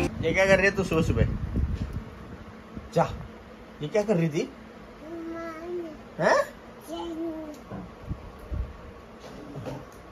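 A toddler babbles and squeals up close.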